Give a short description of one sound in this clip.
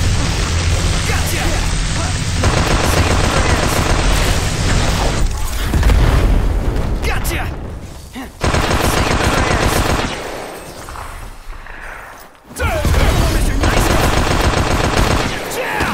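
Blades clash and swish in a fight.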